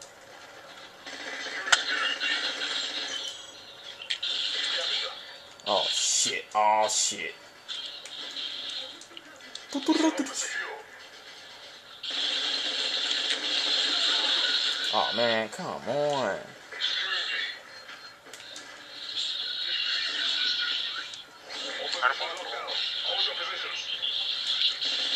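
Rapid gunfire from a video game rattles through a television speaker.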